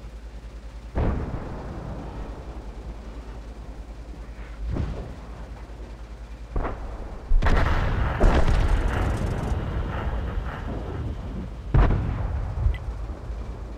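A tank cannon fires several heavy booming shots.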